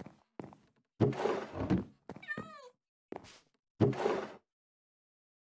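A wooden chest creaks open and bangs shut.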